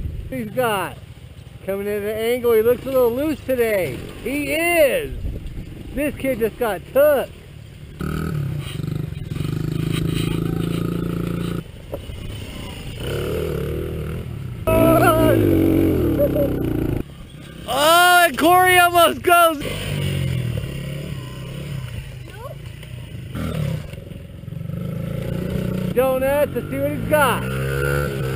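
Small motorbike engines rev up and down with a high, whining buzz.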